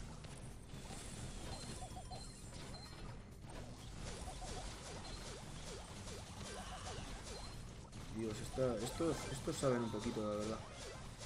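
Game sound effects zap and chirp rapidly.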